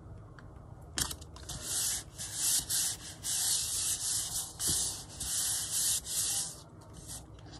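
Hands rub across a sheet of paper with a soft, steady swishing.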